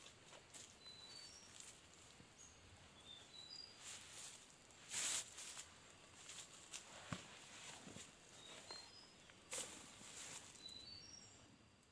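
A man rustles and handles gear on a bed of dry leaves.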